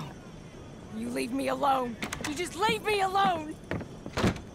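A woman speaks sharply and upset, close by.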